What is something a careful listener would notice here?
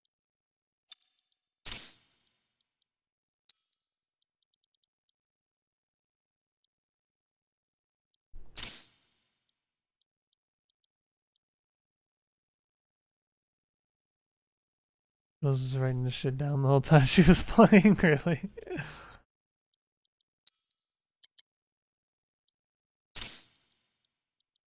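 Short soft menu ticks and whooshes sound as selections change.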